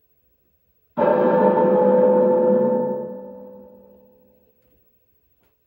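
An arcade machine blares a loud musical chord that slowly fades away.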